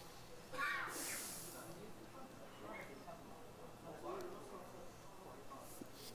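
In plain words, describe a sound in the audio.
Vapour hisses softly as it vents from a rocket.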